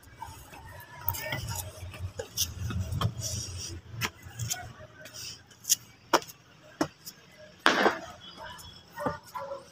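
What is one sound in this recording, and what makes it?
Footsteps scuff and tap on stone steps outdoors.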